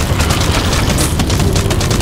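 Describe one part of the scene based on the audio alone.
Flames burst with a crackling whoosh.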